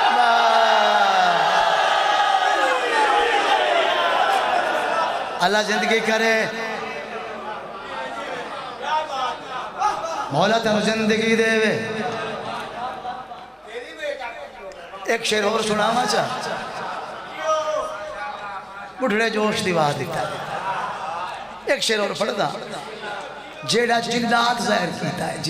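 A middle-aged man recites passionately into a microphone, heard through loudspeakers in a reverberant space.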